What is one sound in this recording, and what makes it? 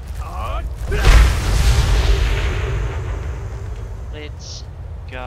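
A loud magical blast roars and slowly fades.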